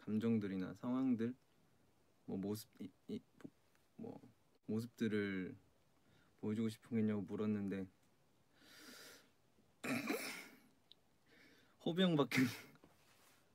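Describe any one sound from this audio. A young man speaks calmly and close, into a microphone.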